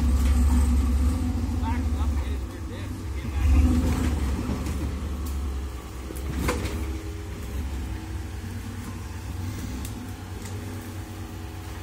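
An off-road truck's engine rumbles and revs as it climbs over rocks.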